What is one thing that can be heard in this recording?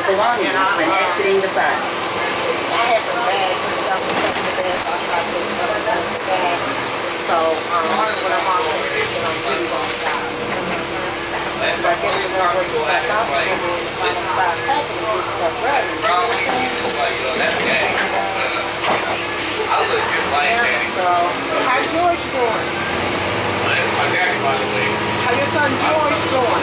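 A bus engine hums and rumbles steadily while driving.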